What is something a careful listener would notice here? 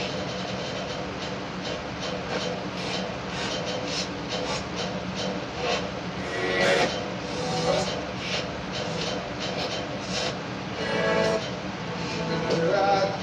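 Music plays through a television loudspeaker.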